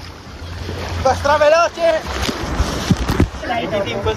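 Water splashes loudly into a pool.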